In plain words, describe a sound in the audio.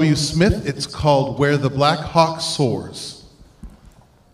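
A man speaks loudly through a microphone in a large hall.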